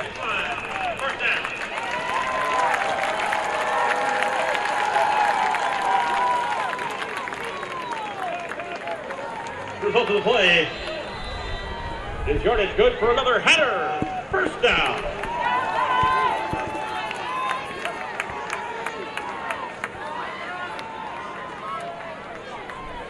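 A crowd cheers and shouts in a large open stadium.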